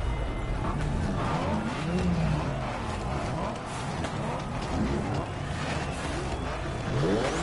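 Car engines rumble and rev loudly nearby.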